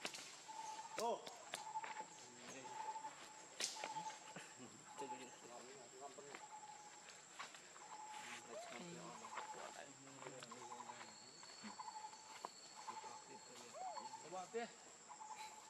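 Young monkeys give short, high squeaking calls now and then.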